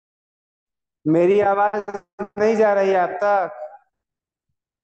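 A man speaks briefly and with animation, close to a microphone in an online call.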